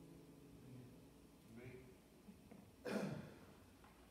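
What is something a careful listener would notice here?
A guitar strums softly.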